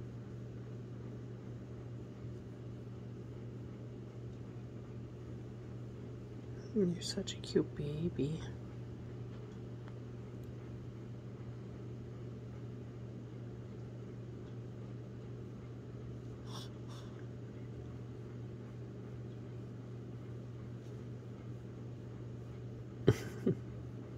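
A hand softly rubs a dog's fur.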